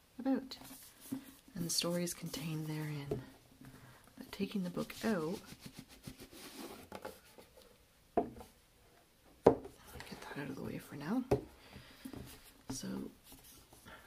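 A hardcover book is handled, with soft taps and rustles.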